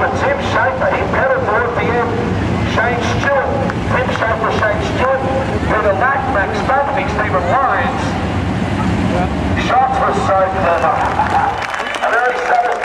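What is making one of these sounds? Racing car engines rumble loudly nearby.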